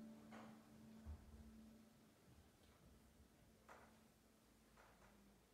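A piano plays quietly.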